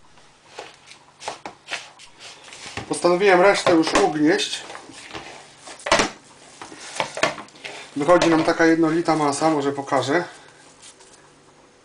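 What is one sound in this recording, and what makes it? Hands knead and squeeze a crumbly dough in a bowl.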